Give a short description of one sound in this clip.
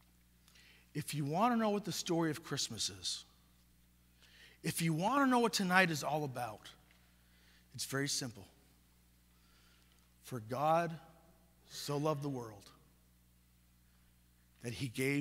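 A man chants slowly in a resonant, echoing hall, pausing between phrases.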